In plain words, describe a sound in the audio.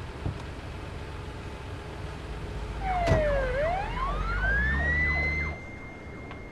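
An ambulance engine rumbles as the vehicle drives off.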